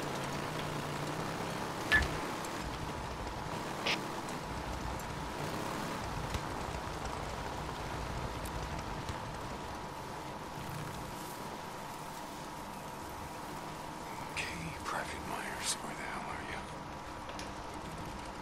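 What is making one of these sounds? A motorbike engine rumbles steadily.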